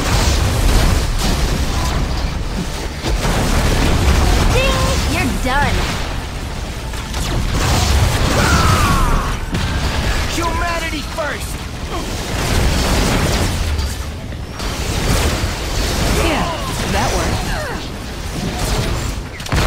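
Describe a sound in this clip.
Energy blasts zap and whoosh.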